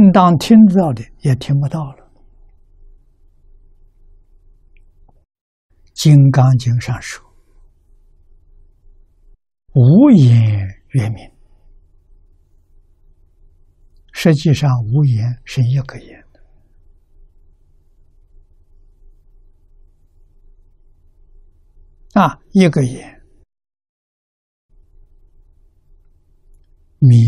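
An elderly man speaks slowly and calmly into a close microphone, with long pauses.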